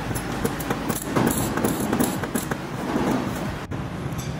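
A power tool grinds against metal.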